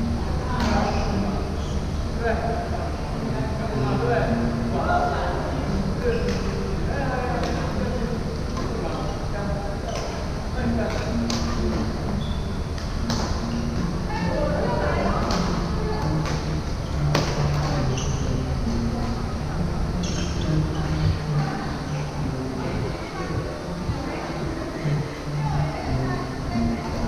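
Rackets strike shuttlecocks with sharp pops in a large echoing hall.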